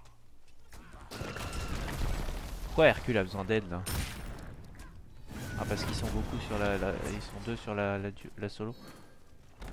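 Magic blasts and weapon hits burst and whoosh in a fast fight.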